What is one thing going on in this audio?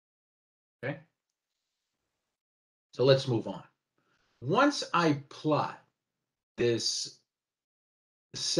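A man speaks calmly in short phrases, heard through an online call.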